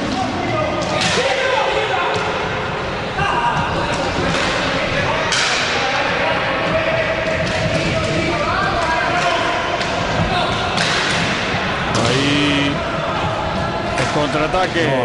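Hockey sticks knock against a ball with sharp clacks.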